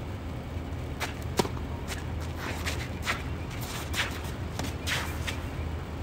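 A tennis ball is struck sharply with a racket, back and forth.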